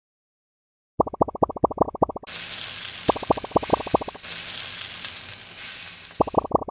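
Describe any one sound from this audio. Quick bright pops ring out in rapid runs as a game collects balls.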